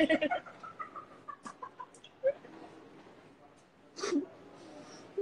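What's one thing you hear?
A young woman laughs and giggles close by.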